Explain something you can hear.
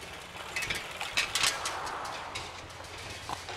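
A bicycle rolls past close by.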